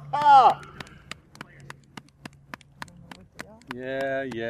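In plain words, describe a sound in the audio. Several women clap their hands.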